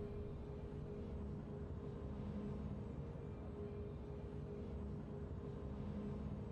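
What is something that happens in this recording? Steady, triumphant game music plays.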